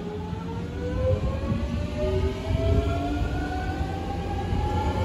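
A train's motor whines, rising in pitch as it speeds up.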